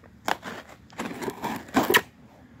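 A utility knife slices through packing tape on a cardboard box.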